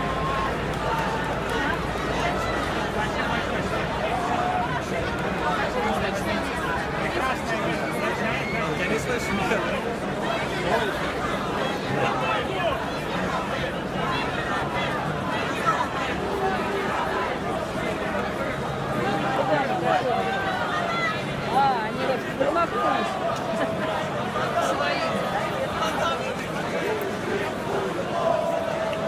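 A large crowd of men and women shouts and chants loudly outdoors.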